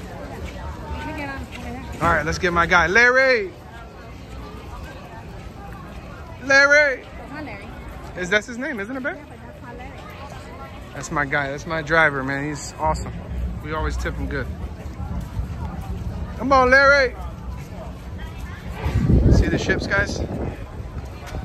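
People talk and chatter nearby outdoors.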